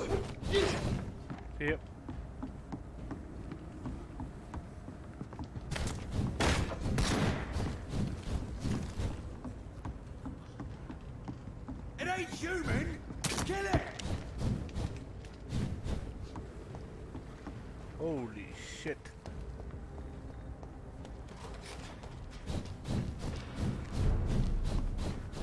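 Footsteps thud across wooden boards.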